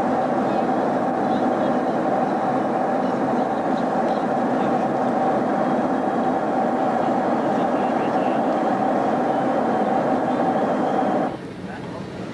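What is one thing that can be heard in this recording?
An aircraft cabin hums with a loud, steady engine drone.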